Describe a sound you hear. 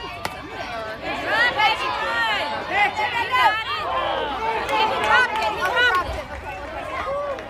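Children shout and cheer excitedly nearby, outdoors.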